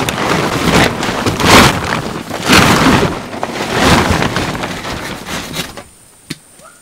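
A plastic tarp rustles and flaps as it is handled.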